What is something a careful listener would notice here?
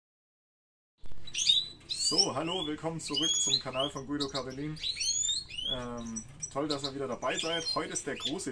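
Small birds chirp and twitter nearby.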